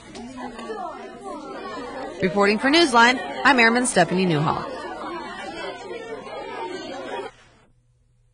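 Children chatter and talk together nearby.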